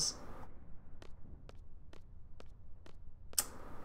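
Footsteps tap on stone in a quick series.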